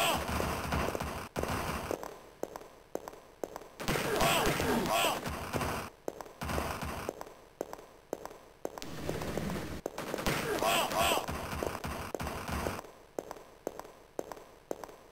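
A gun fires in rapid, repeated shots.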